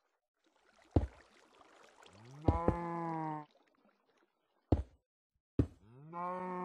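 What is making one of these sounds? Stone blocks knock sharply as they are placed, one after another.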